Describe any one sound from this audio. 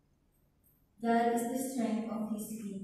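A crowd of people sings together in a large echoing hall.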